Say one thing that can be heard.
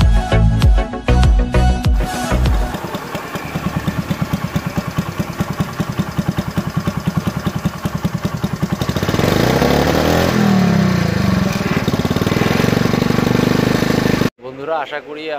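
A motorcycle engine revs and then idles with a fast, steady putter close by.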